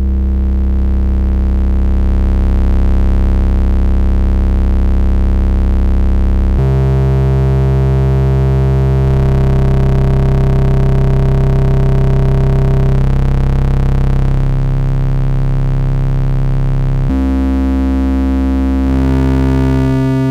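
A synthesizer drones with a steady buzzing tone that changes in tone and pitch from time to time as its knobs are turned.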